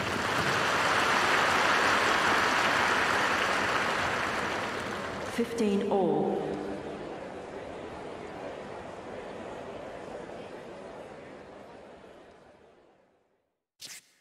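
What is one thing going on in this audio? A crowd applauds loudly in a large arena, then fades away.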